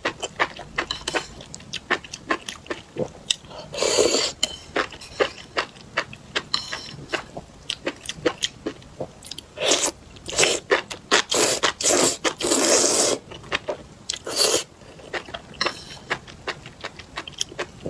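A young woman chews food wetly, close up.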